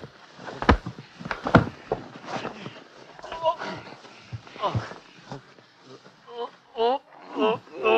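Two men grunt and gasp as they struggle.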